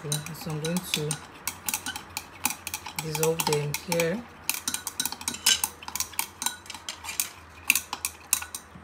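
Plastic containers and lids clink and tap against a hard surface.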